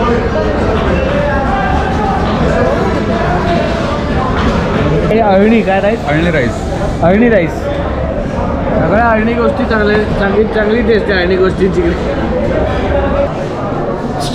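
Several people chatter in the background.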